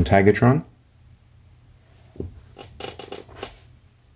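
A plastic toy figure is set down on a hard surface with a light click.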